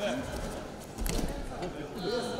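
Bodies thud onto a mat as a wrestler is thrown down.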